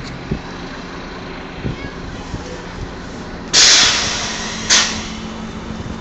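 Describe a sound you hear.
A bus approaches.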